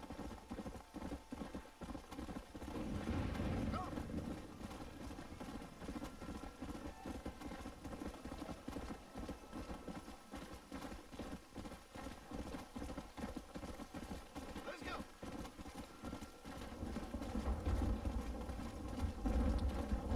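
Horse hooves thud in a steady rhythmic gallop on a dirt trail.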